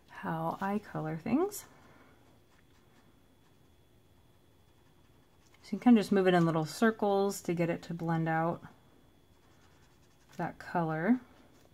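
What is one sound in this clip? A felt-tip marker scratches softly on paper.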